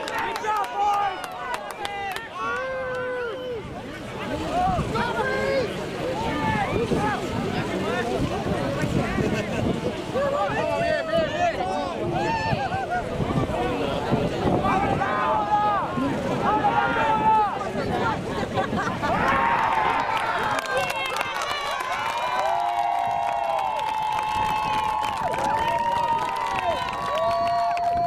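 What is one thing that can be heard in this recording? Young men shout and call out to each other outdoors.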